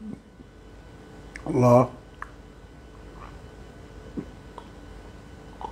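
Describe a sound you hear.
A man sips from a glass with a soft slurp.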